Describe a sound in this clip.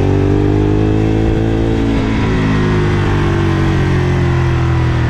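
A Ducati L-twin motorcycle cruises along a road, its engine rumbling, with a short dip in pitch partway through.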